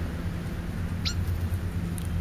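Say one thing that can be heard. A bird gives a short high chirp.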